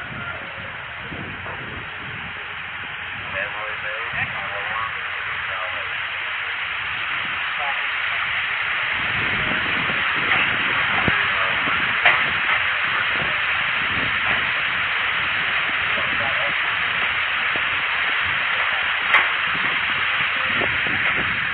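Water pours down a wall in a steady rush that grows louder on approach.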